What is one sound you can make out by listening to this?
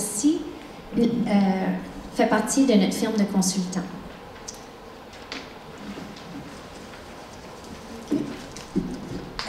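A woman speaks calmly through a microphone in a large echoing hall.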